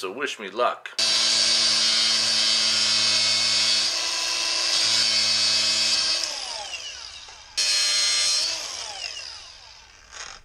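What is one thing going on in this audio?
An angle grinder whines loudly, then spins down.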